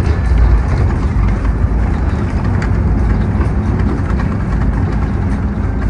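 A bus engine rumbles low and steady while driving along a road.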